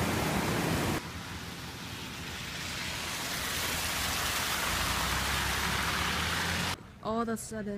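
A car drives along a road.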